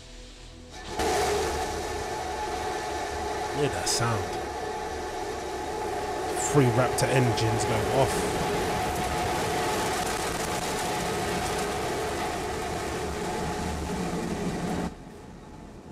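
A rocket engine roars loudly and steadily.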